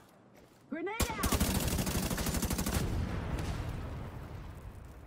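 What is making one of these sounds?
A rifle fires rapid bursts of gunfire close by.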